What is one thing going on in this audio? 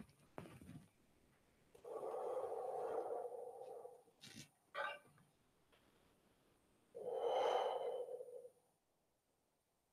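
A wooden staff swishes through the air.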